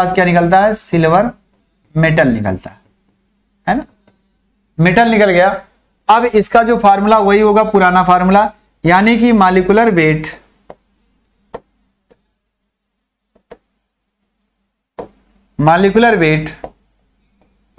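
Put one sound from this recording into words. A young man speaks with animation into a close microphone, in bursts with pauses.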